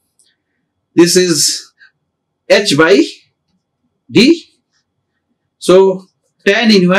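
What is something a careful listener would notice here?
A man speaks calmly and slowly in short phrases into a close microphone.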